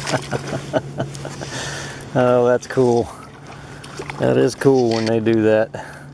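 Water splashes as a fish is pulled through a shallow pond.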